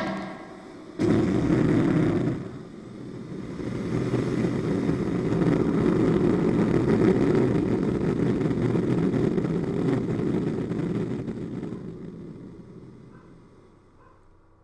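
Sand rushes and roars as it swirls in a whirlpool, then fades.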